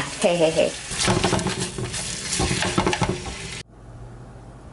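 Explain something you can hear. Chopsticks scrape and clatter against a pan.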